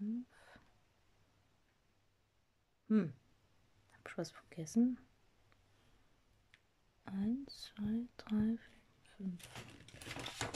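Thread rasps softly as it is pulled through stiff fabric.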